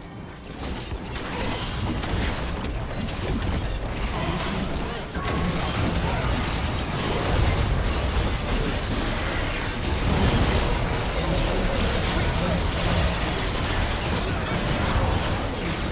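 Spell effects and attacks clash and burst in a busy game fight.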